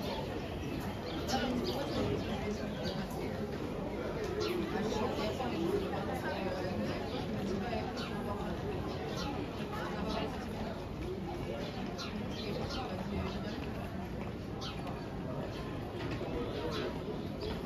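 People chatter in a low murmur outdoors.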